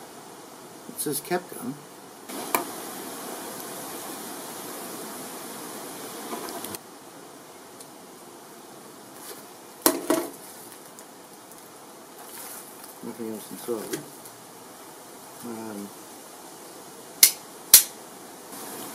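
A plastic device clicks and snaps in hands.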